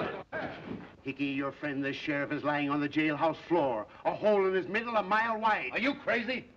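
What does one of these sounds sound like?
An elderly man shouts angrily up close.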